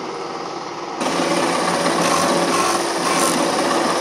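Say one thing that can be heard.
Wood grinds against a spinning sanding disc.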